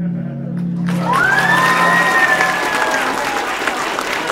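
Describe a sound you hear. Young people in the audience cheer and whoop.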